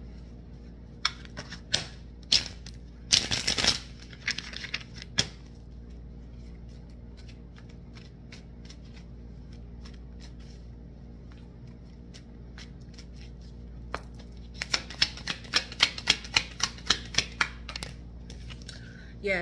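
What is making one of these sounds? Playing cards riffle and flick as they are shuffled close by.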